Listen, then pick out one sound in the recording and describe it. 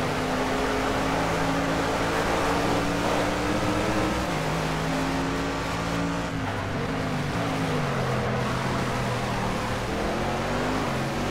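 Tyres hum and rumble on the track.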